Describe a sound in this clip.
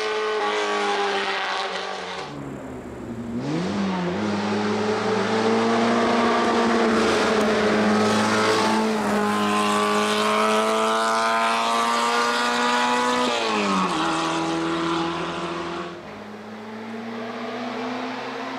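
A race car engine roars loudly, revving up and down as the car shifts gears.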